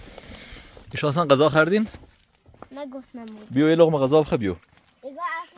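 A young boy speaks close by.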